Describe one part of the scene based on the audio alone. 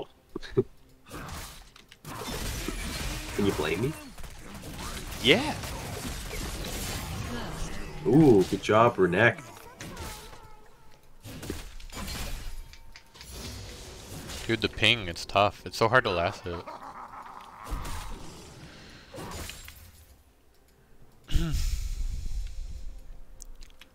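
Video game combat sounds clash and burst in quick succession.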